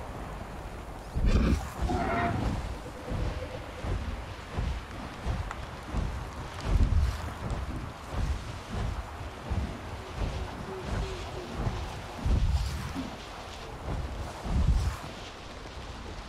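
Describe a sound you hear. Large wings beat in heavy, rhythmic whooshes.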